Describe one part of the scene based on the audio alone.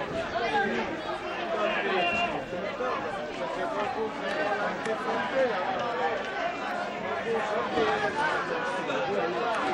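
A crowd of men shout and argue outdoors.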